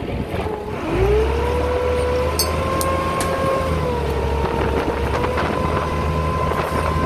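A boat engine rumbles low nearby.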